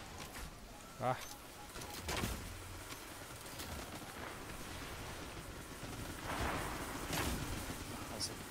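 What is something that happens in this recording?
A weapon fires crackling energy blasts.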